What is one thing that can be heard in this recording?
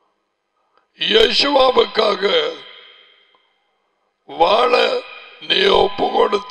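An elderly man speaks emphatically into a close headset microphone.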